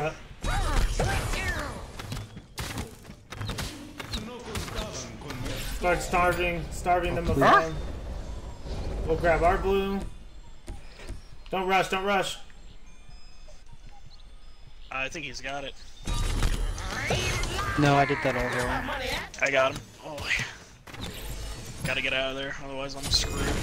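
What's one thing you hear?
Game effects whoosh and clash during combat.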